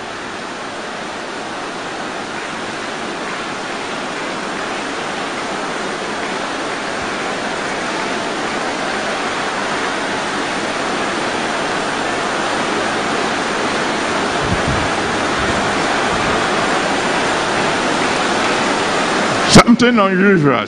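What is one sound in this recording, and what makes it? A large crowd prays aloud all at once in a big echoing hall, and the sound slowly swells.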